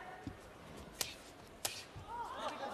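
A kick lands on a body with a sharp thud.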